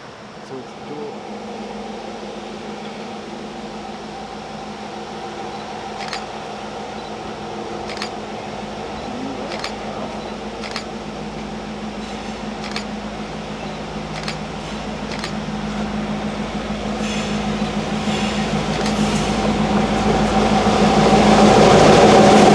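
A diesel locomotive engine rumbles steadily, growing louder as it approaches.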